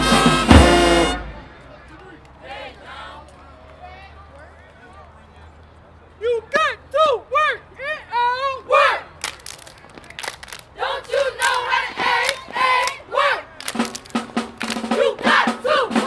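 A marching band blasts a loud brass chord, then plays short, punchy swooping phrases.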